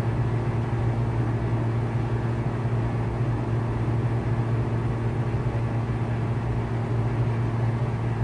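A propeller engine drones steadily and loudly.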